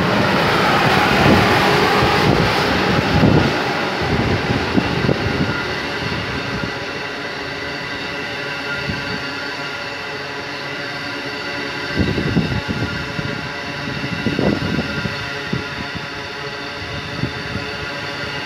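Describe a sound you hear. Train wheels clatter and thump over rail joints.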